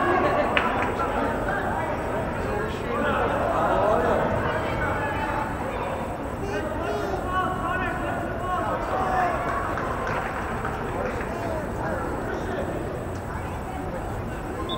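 Young players and adults shout and chatter across a large echoing indoor hall.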